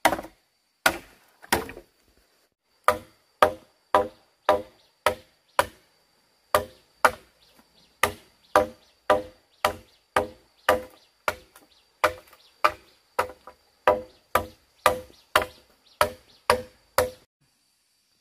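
A machete chops into bamboo with sharp, regular knocks.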